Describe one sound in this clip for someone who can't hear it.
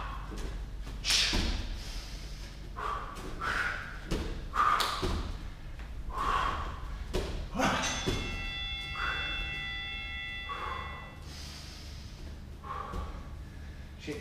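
A man breathes heavily between exercises.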